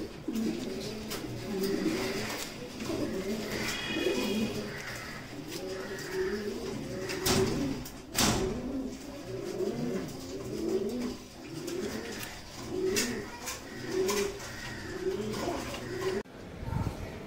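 Pigeons coo in low, rolling bursts, over and over.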